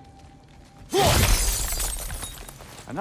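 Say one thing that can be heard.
A heavy axe strikes crystal with a loud crash.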